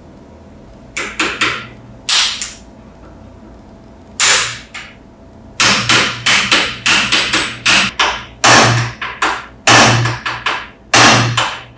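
A hammer strikes a steel punch against small brass parts held in a vise.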